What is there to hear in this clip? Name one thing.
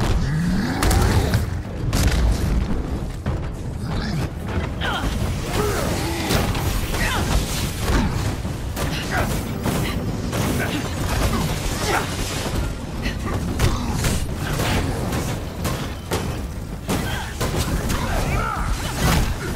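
Heavy punches and explosions crash again and again.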